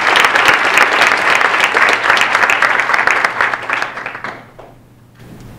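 An audience claps loudly.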